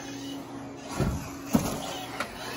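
A remote-control car thuds as it lands on a ramp.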